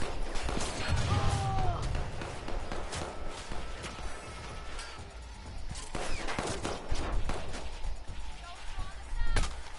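Footsteps run quickly over gravel.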